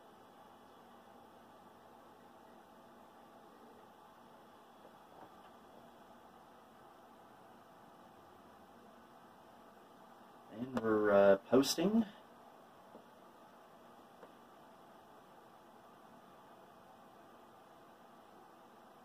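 An old computer hums steadily.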